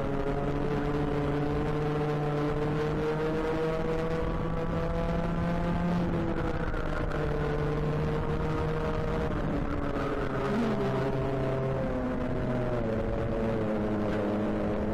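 A small kart engine drones loudly up close, its pitch rising and falling with the throttle.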